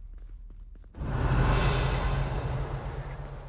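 A magic spell bursts with a loud whoosh.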